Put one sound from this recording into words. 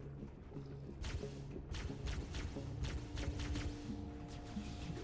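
An energy gun fires rapid bursts of shots.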